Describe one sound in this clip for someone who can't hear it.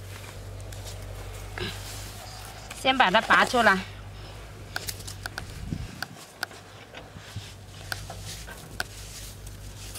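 Gloved hands scrape and scoop loose dirt.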